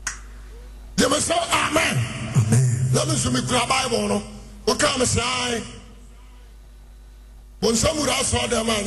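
A man preaches with emphasis through a microphone.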